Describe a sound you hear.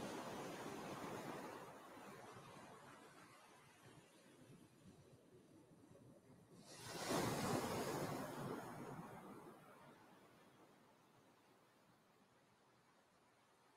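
Waves wash onto a shore, swelling and fading.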